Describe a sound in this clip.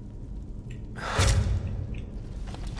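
An arrow is loosed with a sharp twang and whoosh.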